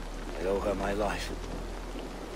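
A man speaks calmly in a deep voice, close by.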